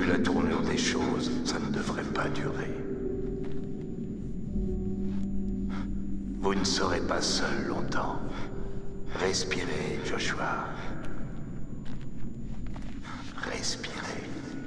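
A middle-aged man speaks calmly and quietly, close by.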